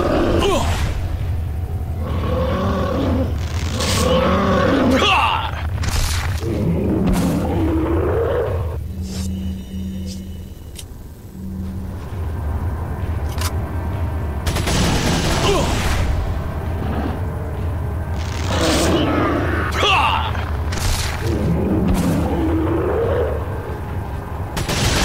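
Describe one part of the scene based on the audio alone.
A huge creature growls and roars deeply.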